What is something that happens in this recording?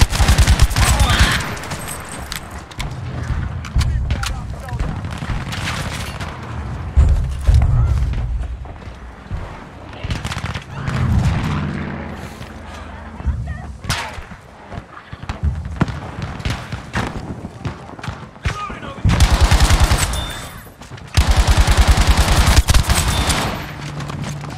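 A rifle fires rapid, loud shots close by.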